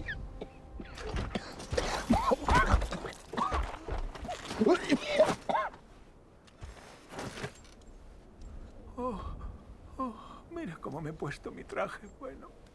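An elderly man speaks in a strained, pained voice.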